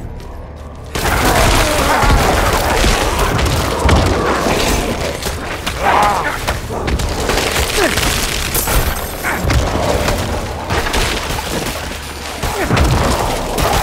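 Game combat sounds clash and crash loudly with blows and magic bursts.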